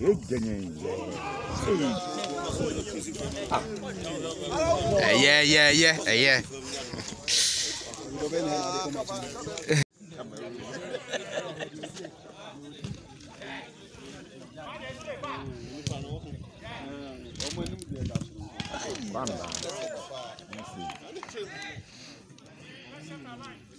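Men talk and call out nearby, outdoors.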